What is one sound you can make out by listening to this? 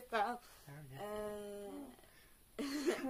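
A young man cries out in surprise.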